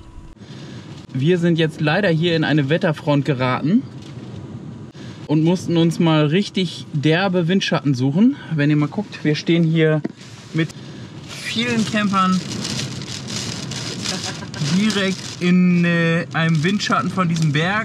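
A man talks with animation close to the microphone.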